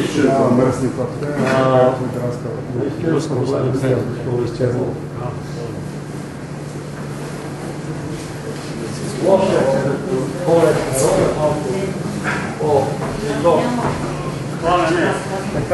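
Several people chat and murmur nearby in an echoing room.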